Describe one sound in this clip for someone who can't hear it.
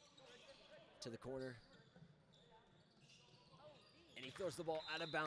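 Young men shout and call out in an echoing gym.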